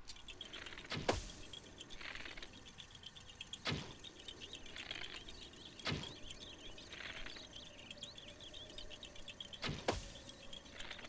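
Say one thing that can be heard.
Arrows are loosed from a bow with sharp snaps.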